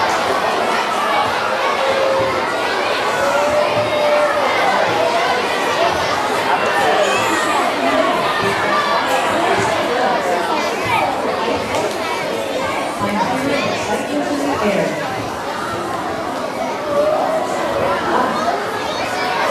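Many children chatter loudly in a large echoing hall.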